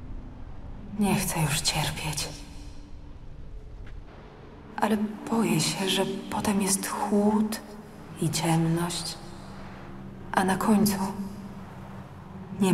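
A young woman speaks softly and sadly, close by.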